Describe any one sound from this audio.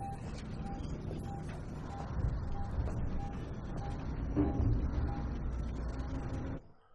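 A device beeps at a steady, quick rhythm.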